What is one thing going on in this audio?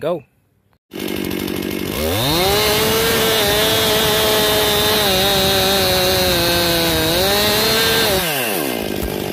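A chainsaw roars loudly, cutting through wood close by.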